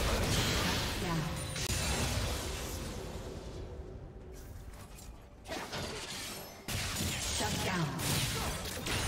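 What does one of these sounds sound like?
Magic spells crackle and whoosh in a fast game battle.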